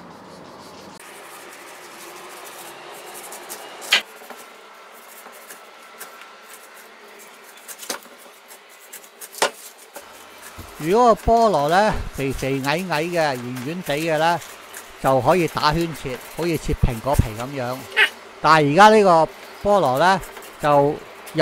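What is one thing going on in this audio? A knife cuts through a pineapple's tough skin.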